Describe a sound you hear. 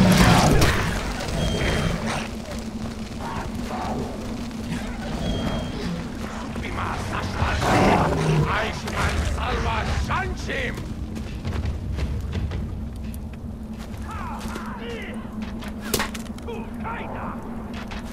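A burning torch crackles and roars steadily.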